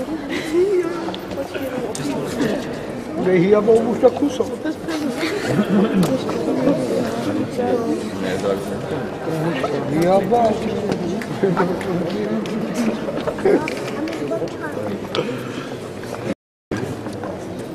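Several adults chat and murmur close by in an echoing hall.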